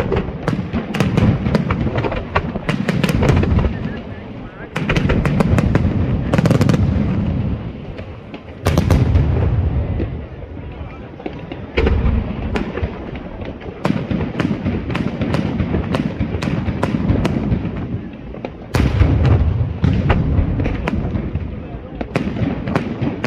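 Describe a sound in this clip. Deep booms rumble and echo outdoors.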